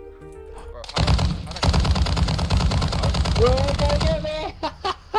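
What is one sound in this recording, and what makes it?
A heavy machine gun fires rapid bursts.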